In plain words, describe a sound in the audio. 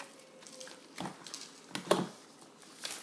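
A plastic blender knocks against a plastic bowl.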